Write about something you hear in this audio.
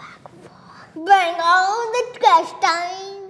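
A young boy laughs.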